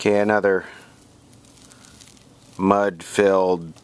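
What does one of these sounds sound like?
Dry debris rustles as fingers pull it loose.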